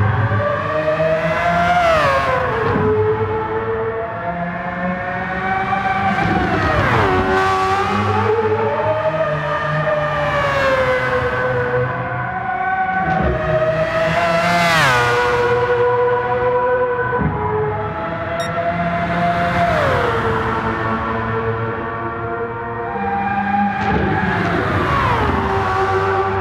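A racing car's engine roars at high revs, rising and falling as the gears shift.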